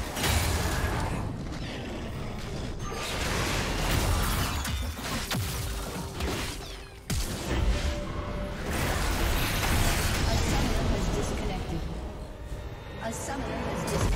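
Game spell effects crackle and whoosh in a fight.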